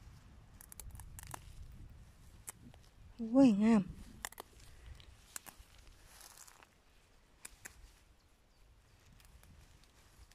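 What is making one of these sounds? Leafy plants rustle softly as a hand brushes through them.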